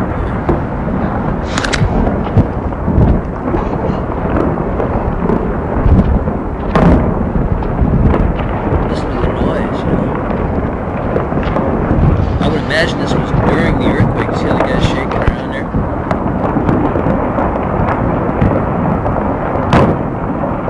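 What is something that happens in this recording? Stones clatter and crack as they tumble.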